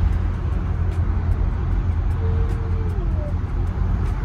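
A young woman yawns.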